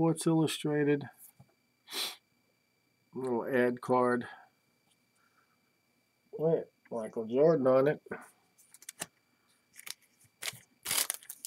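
Foil wrappers crinkle and rustle as hands handle card packs.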